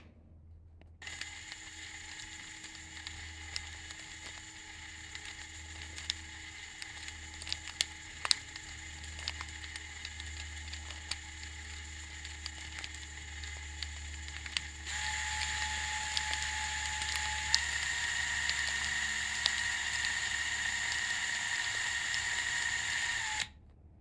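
Plastic gears tick and click as they turn.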